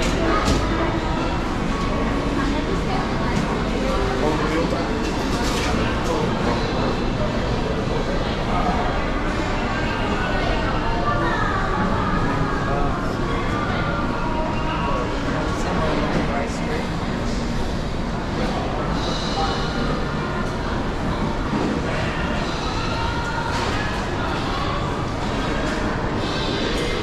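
Many voices murmur in a busy, echoing indoor hall.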